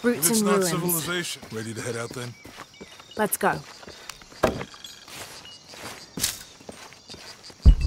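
Footsteps tread on leaves and stone.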